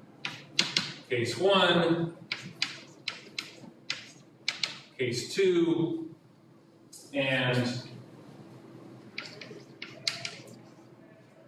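Chalk taps and scrapes sharply on a blackboard.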